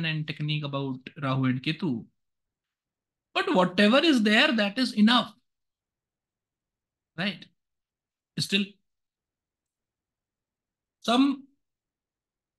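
A young man talks calmly over an online call, pausing often.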